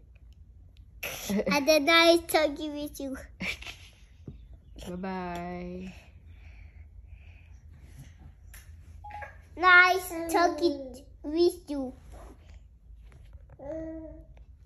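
A young boy talks and giggles close by, with animation.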